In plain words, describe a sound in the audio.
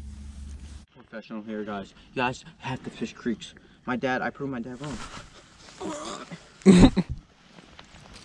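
A young man talks with animation close by, outdoors.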